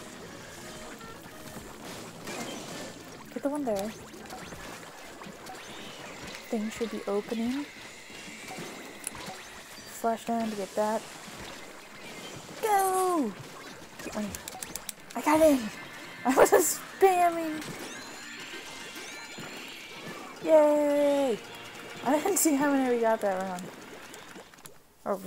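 Paint splats and squelches in short bursts.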